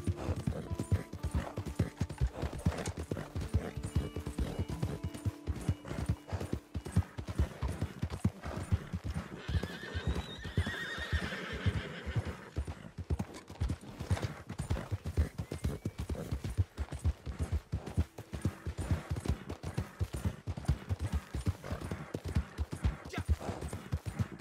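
Horse hooves thud rapidly on a dirt track.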